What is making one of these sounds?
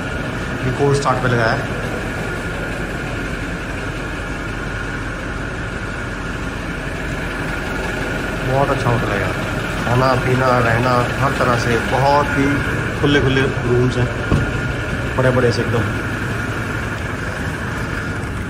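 An SUV engine runs in an echoing concrete space.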